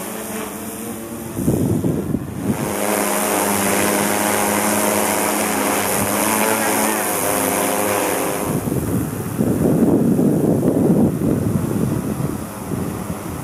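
A drone's rotors whir with a steady, high buzzing hum.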